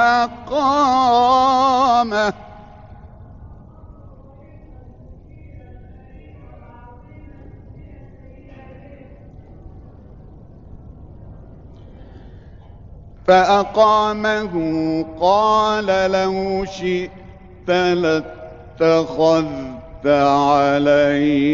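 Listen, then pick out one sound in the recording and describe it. A middle-aged man chants in long, drawn-out melodic phrases through a microphone, with pauses between them.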